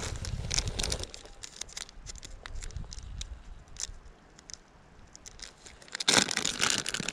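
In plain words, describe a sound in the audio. A backpack's fabric rustles as hands dig through it.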